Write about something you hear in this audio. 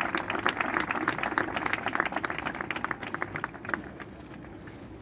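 A crowd claps steadily outdoors, then the clapping dies away.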